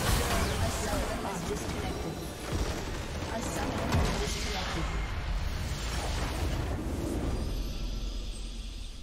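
Magic blasts crackle and whoosh in a loud fight.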